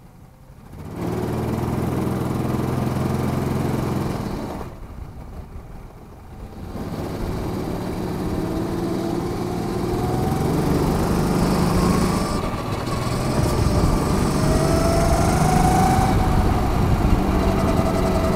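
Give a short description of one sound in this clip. A go-kart engine revs up and buzzes loudly as the kart speeds along.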